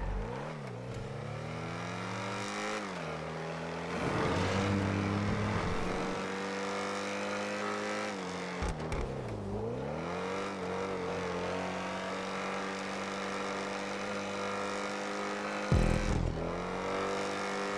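A car engine roars, revving up and down.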